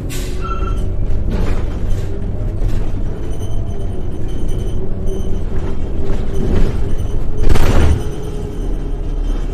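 A bus body rattles and creaks over the road.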